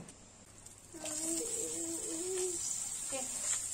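Squid sizzles in hot oil in a pan.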